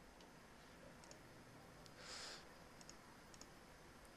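A computer game gives a soft click as a card is drawn.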